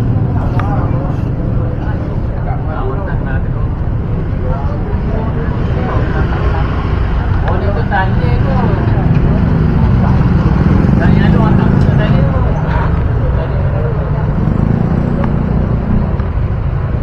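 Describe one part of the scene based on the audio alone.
Elderly men chat outdoors.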